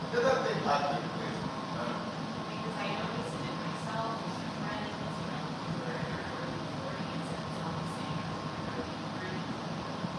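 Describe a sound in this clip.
Footsteps shuffle on a wooden floor.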